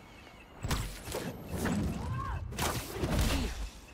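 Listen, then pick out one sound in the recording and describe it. Heavy thuds and blows land in a fight.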